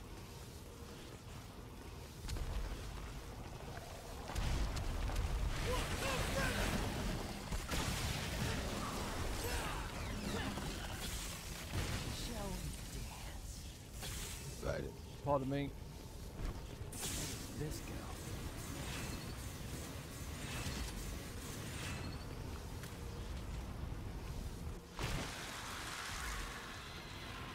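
Sword slashes and impacts clash in a video game fight.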